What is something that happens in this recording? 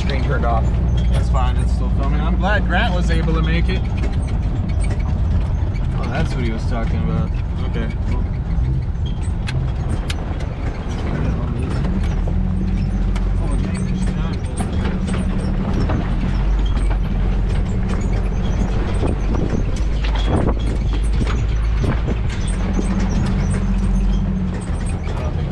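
A vehicle rattles and bumps over a rough, rocky track.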